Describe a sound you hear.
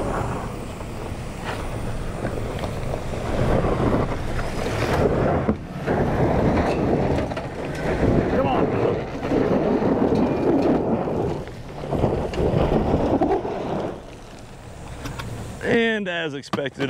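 A pickup truck's engine roars as it drives up a dirt slope.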